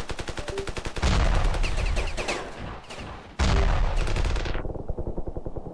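Heavy explosions boom close by and rumble away.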